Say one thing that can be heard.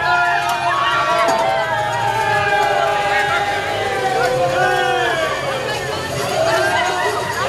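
A group of people sings and shouts loudly outdoors.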